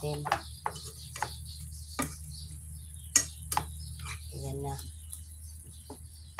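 A wooden spatula scrapes and clatters against a frying pan.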